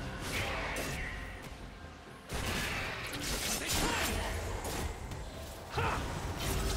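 Game combat effects whoosh and clash.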